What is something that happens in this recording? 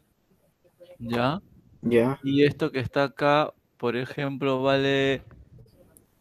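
A young man speaks with animation over an online call.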